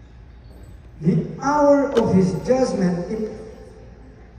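A middle-aged man speaks into a microphone over a loudspeaker.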